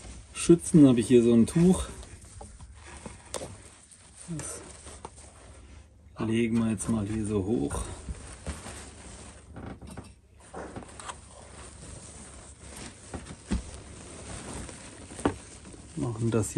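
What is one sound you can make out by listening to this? A cloth rustles as it is draped and tucked around by hand.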